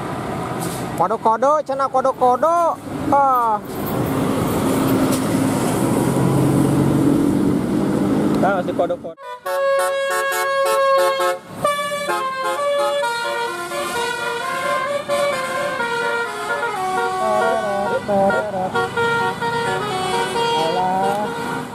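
Bus horns blare warbling, musical tunes.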